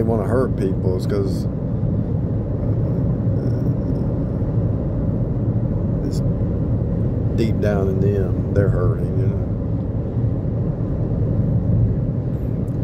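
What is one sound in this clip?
A car's tyres rumble steadily on a highway from inside the car.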